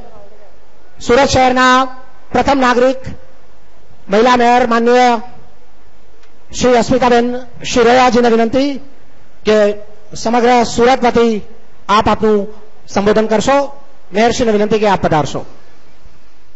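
A man speaks into a microphone, heard over loudspeakers.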